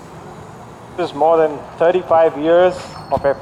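A man speaks through a microphone and loudspeakers in a large hall.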